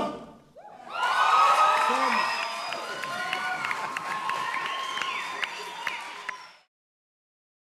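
A choir of young men sings.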